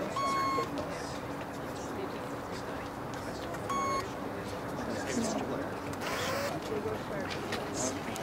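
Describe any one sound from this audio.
A crowd of adults chatters nearby.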